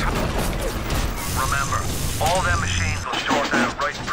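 Electricity crackles and buzzes in sharp bursts.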